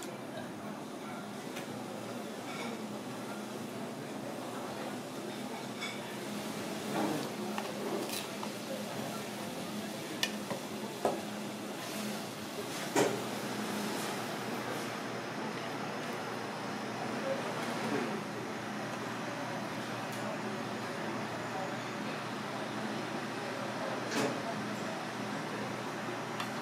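Water boils and bubbles steadily in a pot.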